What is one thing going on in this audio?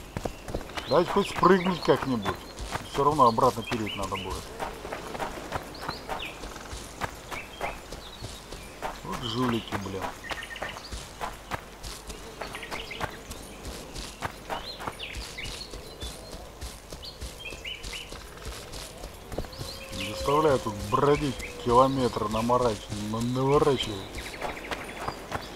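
Footsteps crunch through grass and leaves on a forest floor.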